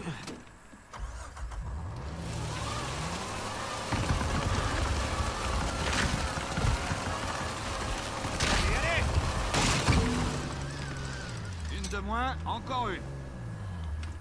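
A jeep engine revs and roars as the jeep drives over rough ground.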